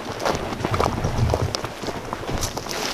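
Boots crunch on dry grass and dirt.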